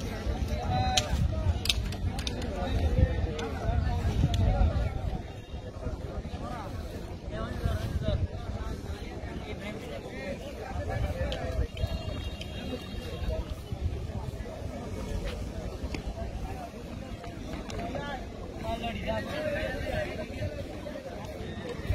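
A crowd of men talks in the distance.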